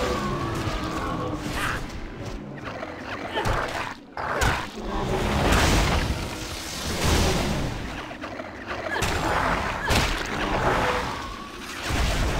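Magic spells crackle and burst in rapid bursts.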